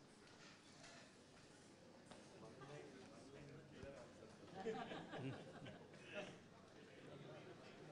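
Men murmur and chat faintly in a large hall.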